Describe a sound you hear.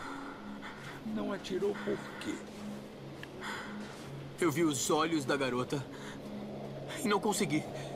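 A young man speaks with emotion, raising his voice.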